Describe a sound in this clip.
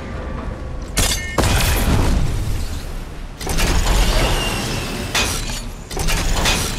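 A rushing whoosh rises as a zipline carries a rider along.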